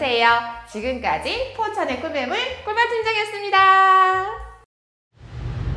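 A woman speaks brightly and with animation into a microphone.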